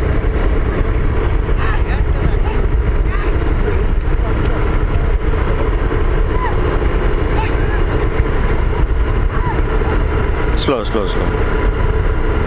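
Cart wheels rumble over the road.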